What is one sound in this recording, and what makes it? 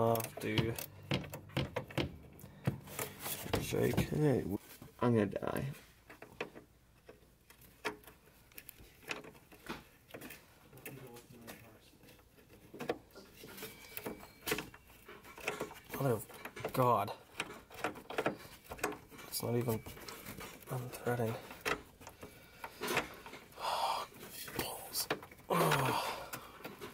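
A wrench clicks and scrapes against a metal bolt.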